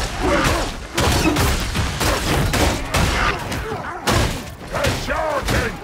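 A blade slashes and thuds into bodies.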